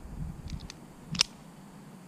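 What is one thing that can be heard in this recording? A pistol's slide clicks as it is worked by hand.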